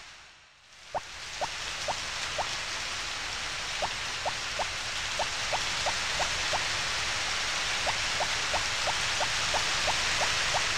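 Water sprays steadily from sprinklers with a soft hiss.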